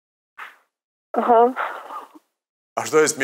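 A young man laughs heartily into a microphone.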